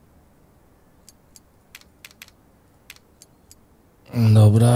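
Soft interface clicks sound as menu items are picked.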